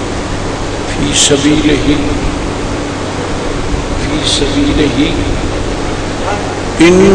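An elderly man speaks slowly into a microphone, heard through a loudspeaker.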